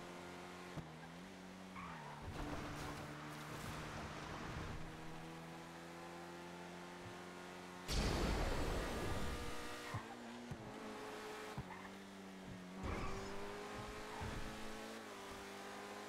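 A sports car engine hums steadily and revs up and down.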